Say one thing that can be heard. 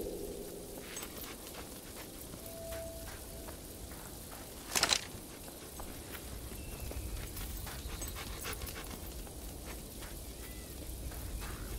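Footsteps run quickly on a dirt path.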